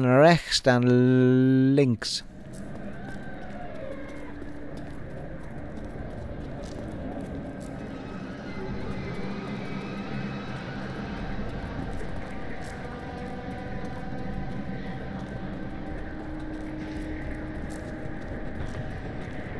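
Footsteps fall on stone as figures walk.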